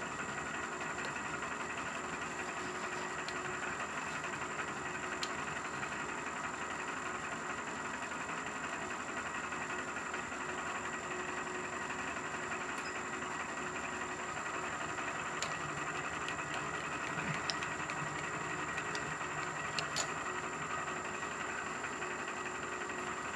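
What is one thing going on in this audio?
A milling machine hums steadily with a high whine.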